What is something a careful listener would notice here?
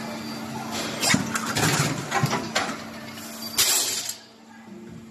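A machine's mould clanks as it opens and shuts.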